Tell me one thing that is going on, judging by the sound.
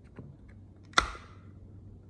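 A plastic connector snaps into place with a sharp click.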